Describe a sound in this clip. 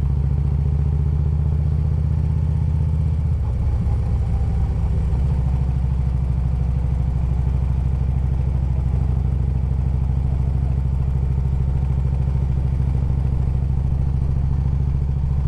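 A motorcycle engine rumbles steadily close by, shifting gear once.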